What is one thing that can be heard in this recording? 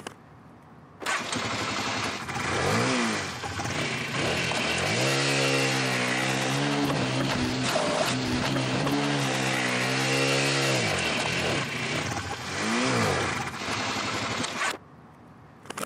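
A motorcycle engine revs loudly and idles.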